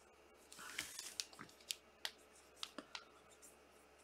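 Plastic card cases click and rustle in hands.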